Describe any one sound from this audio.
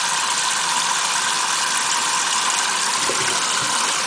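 A metal sink stopper clinks against the sink.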